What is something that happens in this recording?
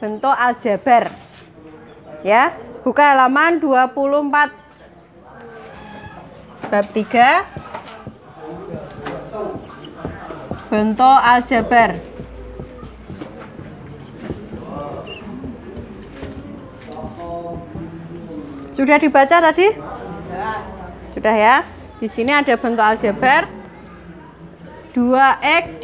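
A young woman speaks clearly and slowly, as if teaching, close by outdoors.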